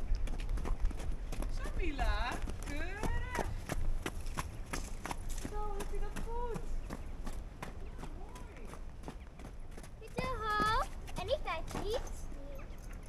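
Hooves thud softly on sand as a horse walks.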